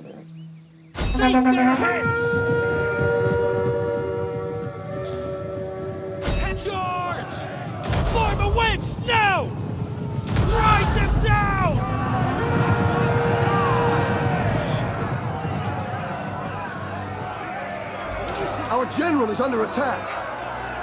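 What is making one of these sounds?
Many horses gallop with thundering hooves.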